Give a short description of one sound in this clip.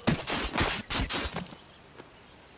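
Heavy blows thud and splatter.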